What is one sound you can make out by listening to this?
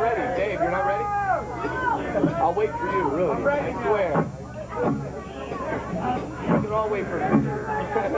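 An electric bass guitar plays through an amplifier.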